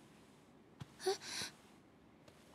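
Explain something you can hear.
A young woman exclaims softly in surprise, close by.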